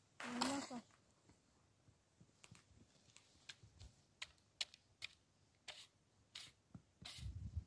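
A shovel scrapes and digs into dry, sandy soil.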